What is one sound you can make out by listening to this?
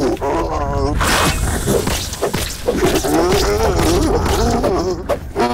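A spear strikes a large insect with dull thuds.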